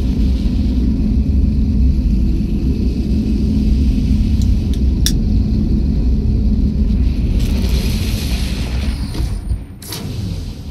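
A deep, rushing roar surges steadily and then suddenly drops away.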